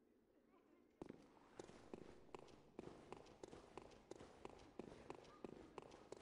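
Footsteps clatter quickly on stone.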